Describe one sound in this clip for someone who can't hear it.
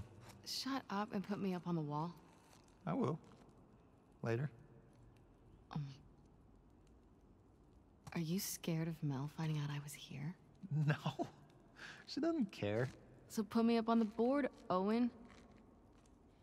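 A young woman speaks with feeling.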